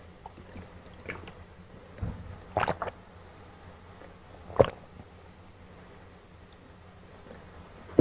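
A man gulps water from a bottle.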